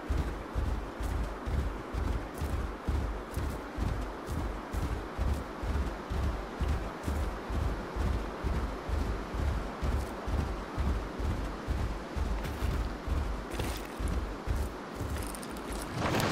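Heavy footsteps of a large creature thud rhythmically on the ground.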